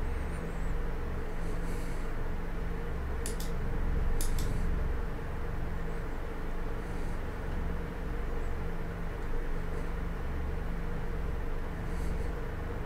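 A hovering craft's engine hums steadily with a low drone.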